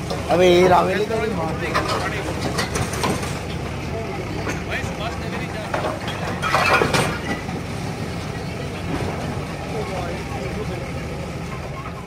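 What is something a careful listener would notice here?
Broken masonry clatters and crashes as a digger pushes rubble.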